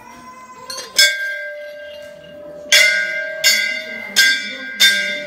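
A large bell rings out loudly several times, its tone ringing on between strikes.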